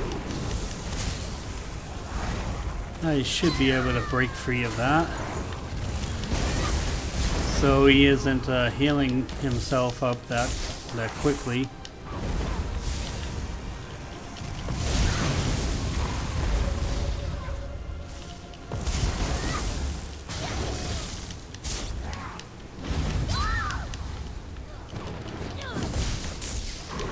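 Electric spells crackle and zap during a fight.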